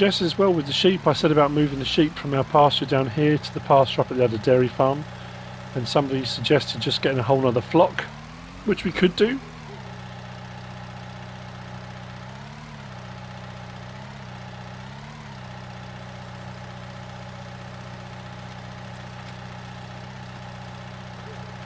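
A tractor engine hums steadily and revs up briefly a few times.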